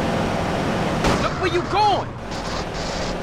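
Car tyres screech briefly as the car spins out.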